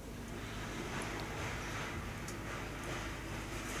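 Small metal parts tap and click lightly together.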